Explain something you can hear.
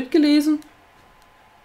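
A young woman says a few words close to a microphone.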